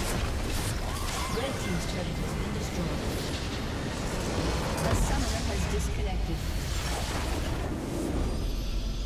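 Magic blasts crackle and clash in a fast game battle.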